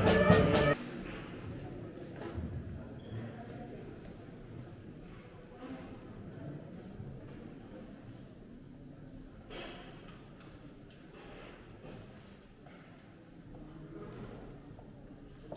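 Footsteps shuffle across a hard floor in a reverberant hall.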